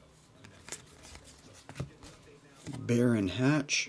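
Trading cards click and rustle as they are handled.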